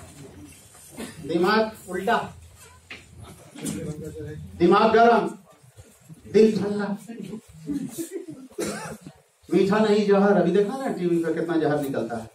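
A man speaks through a microphone and loudspeakers in a room with some echo.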